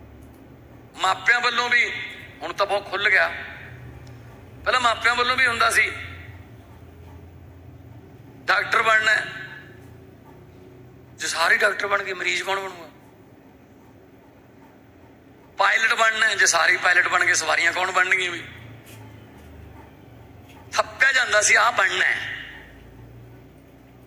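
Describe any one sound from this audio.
A man speaks with animation through a microphone, in bursts with pauses, in a slightly echoing room.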